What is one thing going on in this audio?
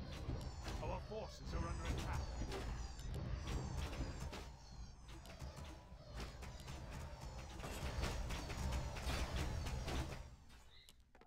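Sword clashes and battle effects clatter rapidly.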